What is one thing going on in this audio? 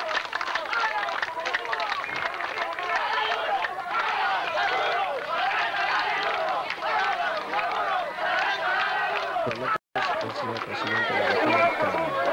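A crowd of men and women chatter loudly all at once, close by.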